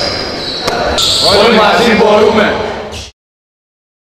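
A group of men shout together.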